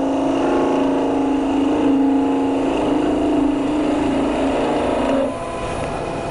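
A chisel scrapes against spinning wood on a lathe.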